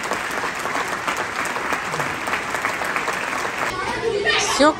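A crowd of children chatters in a large hall.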